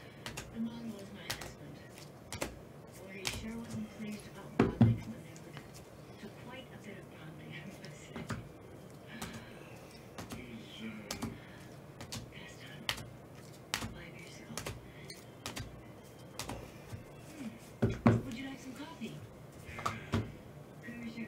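Plastic card cases click and tap against each other as they are handled.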